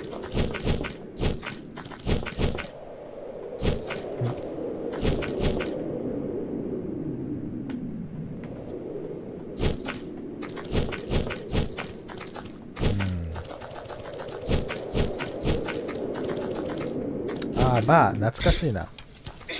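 Short electronic blips sound as a game character jumps and moves.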